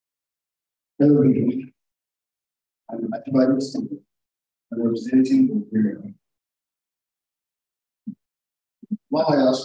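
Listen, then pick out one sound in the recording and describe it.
A young man speaks calmly into a microphone, heard through an online call.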